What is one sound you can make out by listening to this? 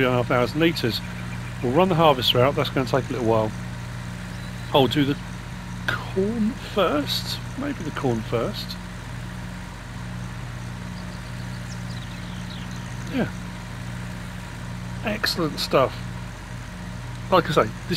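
A tractor engine drones steadily at low revs.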